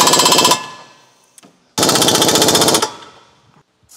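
A pneumatic impact wrench rattles loudly in short bursts.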